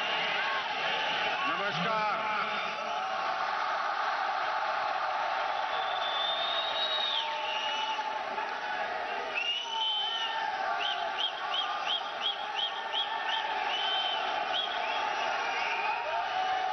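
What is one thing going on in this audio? A large crowd cheers and chants loudly.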